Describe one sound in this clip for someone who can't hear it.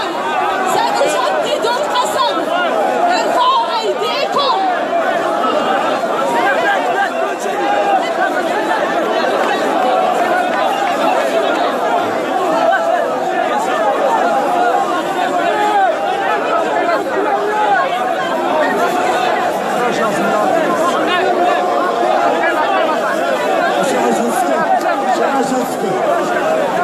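A large crowd of men chants and shouts together outdoors.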